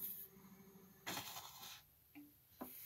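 A hand brushes against a spinning record.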